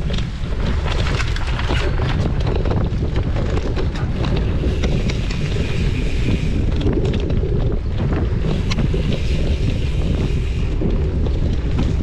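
A bike's frame and chain rattle and clatter over bumps.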